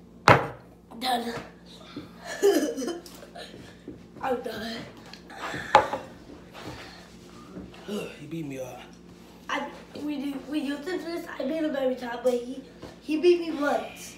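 A young child talks and laughs excitedly close by.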